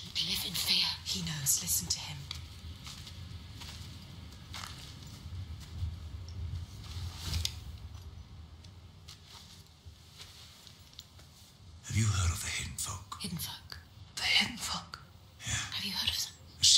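A young woman speaks quietly in reply.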